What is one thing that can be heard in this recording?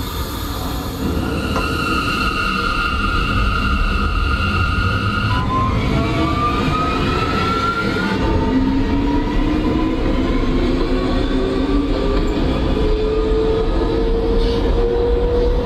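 A subway train rumbles and rattles along the tracks.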